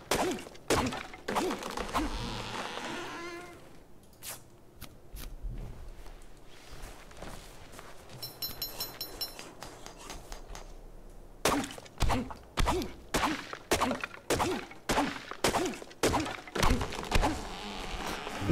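A stone hatchet chops into a tree trunk with repeated dull thuds.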